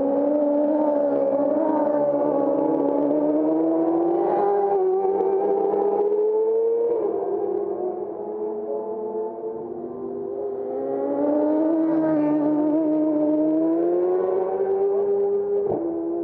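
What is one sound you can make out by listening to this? Racing motorcycle engines roar loudly, their pitch rising and falling through the gears.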